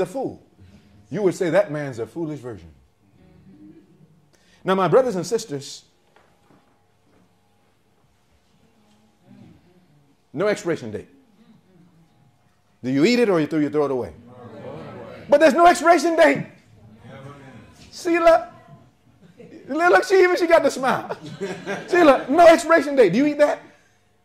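A young man speaks calmly to an audience.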